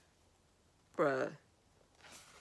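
A teenage girl speaks briefly, close by.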